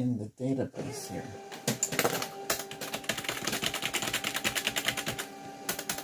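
Fingers type rapidly on a keyboard.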